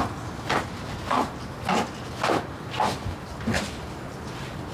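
High heels click on a hard floor at a steady pace.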